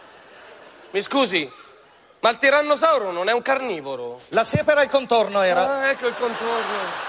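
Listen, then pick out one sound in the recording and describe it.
A second man answers in a lively voice.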